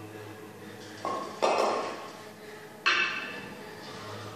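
Heavy kettlebells clank sharply.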